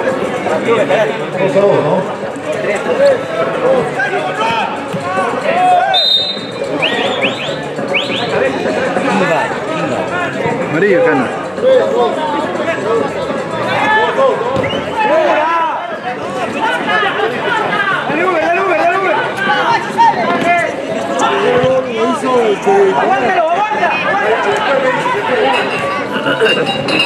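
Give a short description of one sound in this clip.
Young men on the pitch call out to each other.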